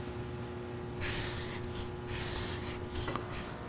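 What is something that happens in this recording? A marker squeaks across paper.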